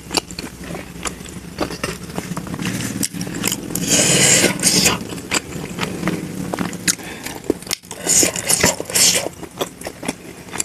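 Crisp flatbread crackles and crunches as hands break it.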